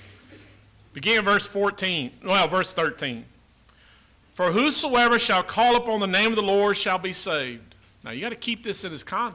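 An elderly man speaks with feeling into a microphone.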